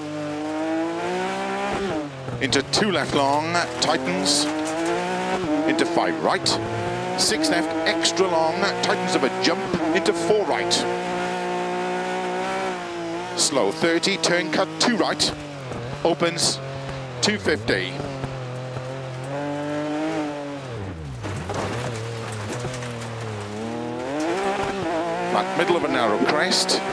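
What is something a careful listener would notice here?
Gravel sprays and crackles under the tyres.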